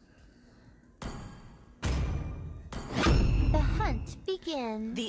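A game sound effect whooshes and chimes as a selection completes.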